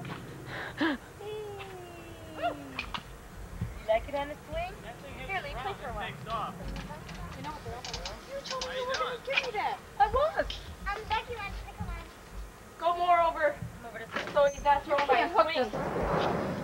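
Young children chatter and squeal nearby.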